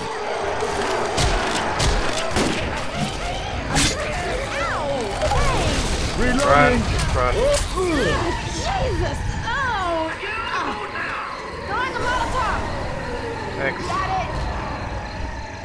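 A creature screams and snarls up close.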